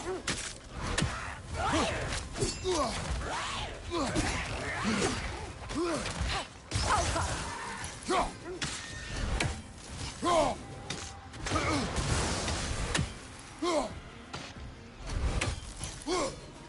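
An axe whooshes through the air.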